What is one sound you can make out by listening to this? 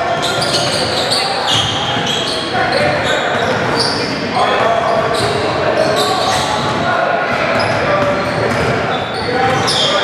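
Young players call out to each other.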